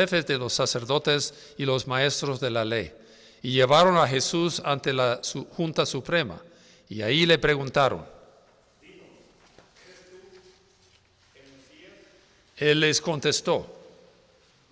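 An elderly man sings loudly through a microphone in an echoing room.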